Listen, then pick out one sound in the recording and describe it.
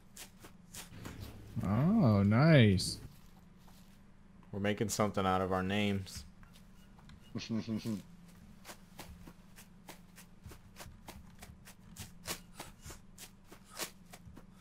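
Footsteps rustle through leafy undergrowth at a steady walking pace.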